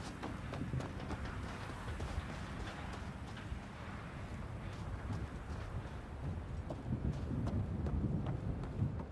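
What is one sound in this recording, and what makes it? Armoured footsteps thud on sand and metal stairs.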